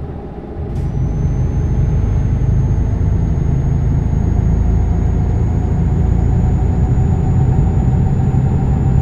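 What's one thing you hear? A truck engine drones steadily as the truck drives along a road.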